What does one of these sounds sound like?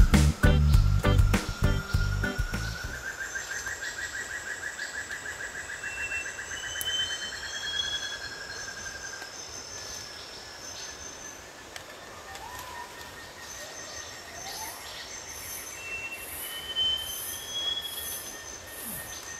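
A river flows gently nearby.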